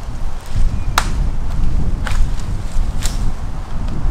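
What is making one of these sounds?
Twigs snap underfoot.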